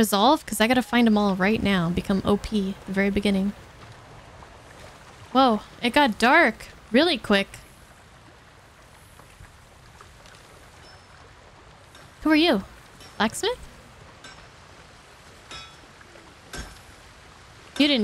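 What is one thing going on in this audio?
A young woman talks into a microphone close by, in short lively bursts.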